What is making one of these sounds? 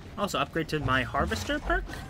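A sword whooshes and clangs in a fast slash.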